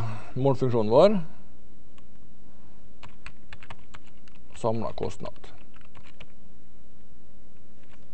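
A man types on a keyboard.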